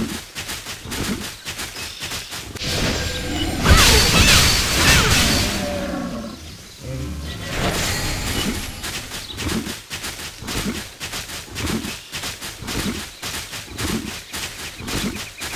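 Hooves thud in a quick, steady galloping rhythm.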